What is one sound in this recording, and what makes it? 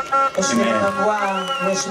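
A woman speaks into a microphone through loudspeakers.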